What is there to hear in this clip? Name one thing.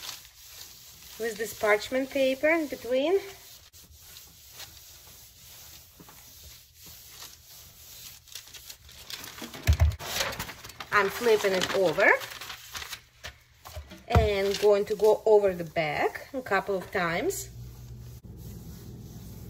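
An iron glides softly over cloth and paper.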